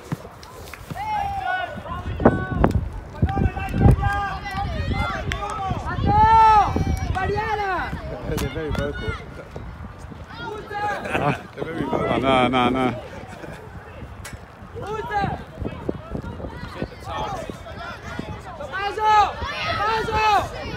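Children shout and call out across an open playing field.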